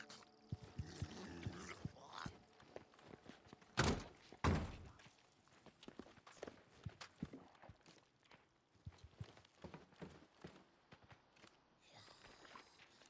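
Footsteps tread on wooden floorboards.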